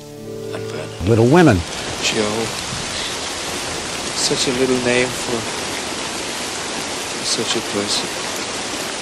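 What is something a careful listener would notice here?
A man speaks quietly and closely.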